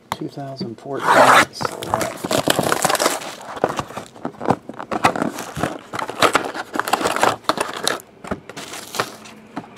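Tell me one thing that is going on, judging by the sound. Plastic shrink wrap crinkles and tears.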